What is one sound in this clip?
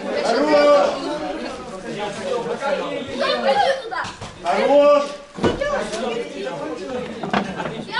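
Boys and young men talk and call out loudly in a large echoing hall.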